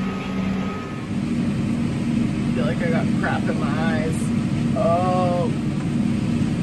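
A combine harvester's engine drones steadily inside a cab.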